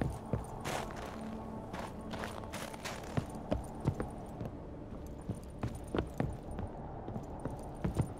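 Footsteps thud on wooden stairs and planks.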